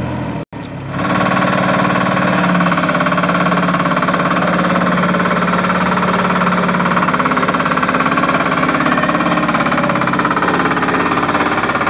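A vibrating roller's engine runs loudly with a fast, rattling throb.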